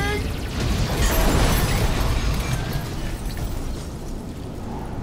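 A large fire roars.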